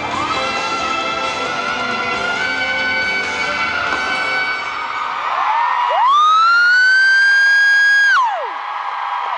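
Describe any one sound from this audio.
A man sings loudly through a microphone, ending on a long high held note.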